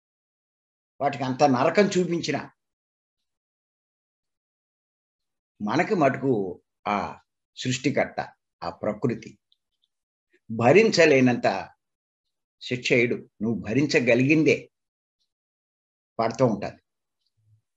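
An elderly man speaks with animation through an online call, pausing often.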